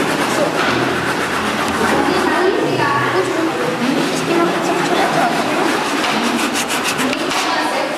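A hand saw cuts back and forth through wood.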